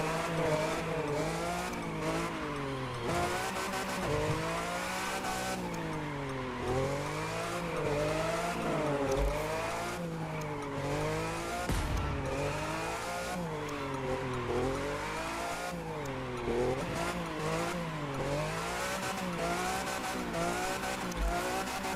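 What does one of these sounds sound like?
A car engine revs up and down as it drifts.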